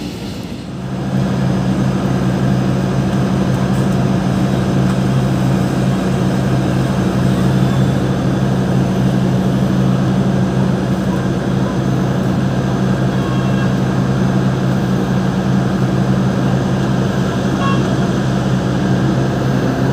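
A diesel locomotive engine drones steadily nearby.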